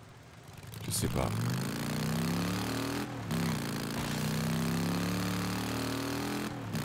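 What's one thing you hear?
A motorcycle engine starts up and hums steadily.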